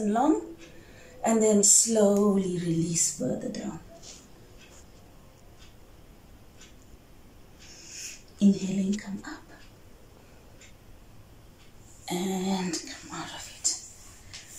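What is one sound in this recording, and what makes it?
A woman speaks calmly and closely, giving instructions.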